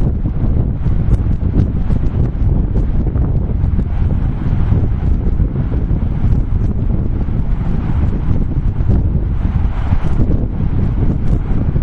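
Wheels of a board roll over sand with a low rumble.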